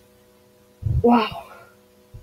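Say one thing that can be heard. A young woman speaks briefly and with animation close to a microphone.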